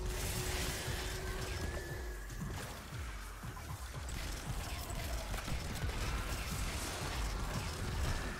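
Rapid gunfire booms and thumps throughout.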